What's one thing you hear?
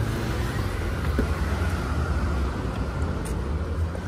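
A car door handle clicks as the door opens.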